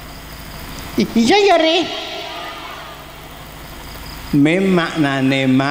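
An elderly man speaks slowly and with feeling into a microphone, heard through a loudspeaker.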